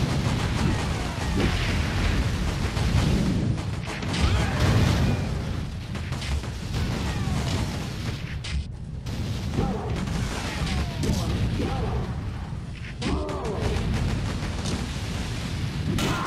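Heavy footsteps thud on a concrete floor.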